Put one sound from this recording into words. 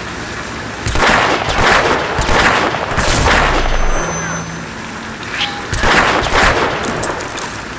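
Gunshots bang out in quick bursts.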